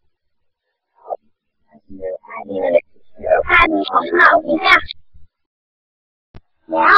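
A young girl talks close to a microphone.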